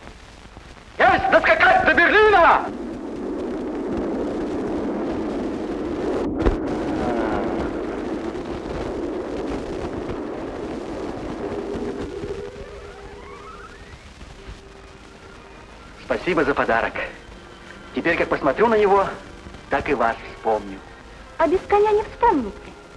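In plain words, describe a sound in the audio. A young man speaks warmly, close by.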